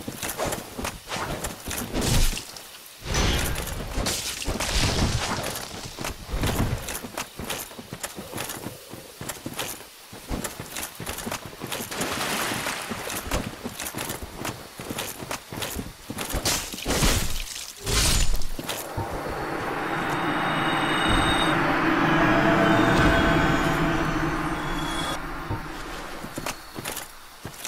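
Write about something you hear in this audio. Heavy armoured footsteps thud and clank across grass.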